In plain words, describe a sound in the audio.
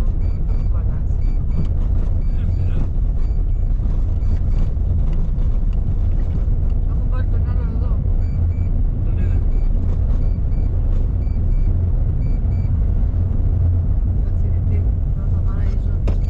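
A car engine rumbles steadily as the car drives along a road.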